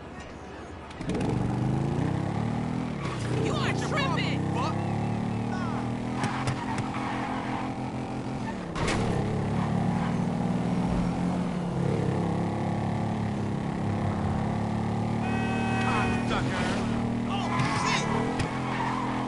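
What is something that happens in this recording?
A small quad bike engine starts up and revs steadily, rising and falling in pitch as it speeds along.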